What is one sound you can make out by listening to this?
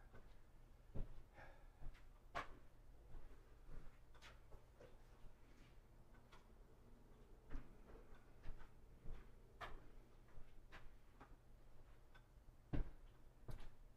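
Objects knock and clatter as a man handles them.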